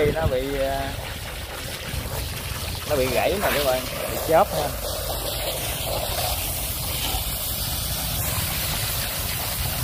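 Water sprays from a hose and splashes onto wet wood and ground.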